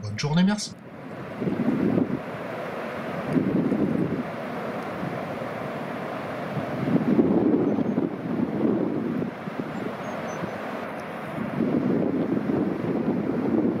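Waves break and roll onto a beach in surging rushes.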